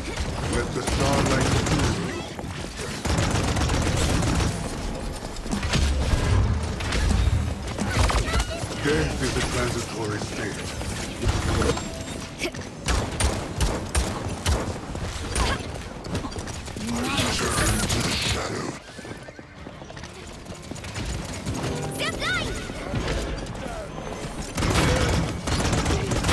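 Rapid game gunfire and energy blasts crackle and thump.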